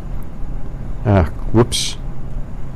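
A man speaks a brief word.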